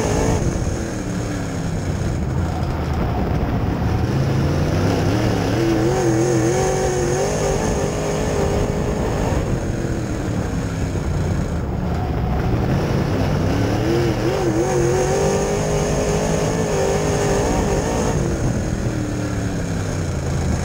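A race car engine roars loudly up close, revving up and down through the laps.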